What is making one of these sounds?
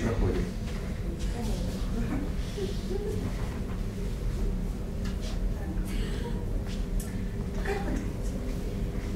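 A young woman speaks softly in an echoing room.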